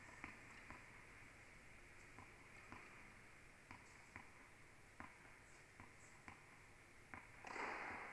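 A tennis ball bounces repeatedly on the court.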